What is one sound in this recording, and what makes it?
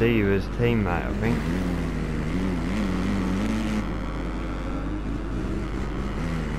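A motorbike engine revs and whines loudly, rising and falling in pitch.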